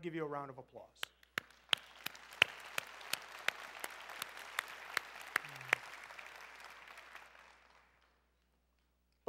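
A crowd applauds in a large echoing hall.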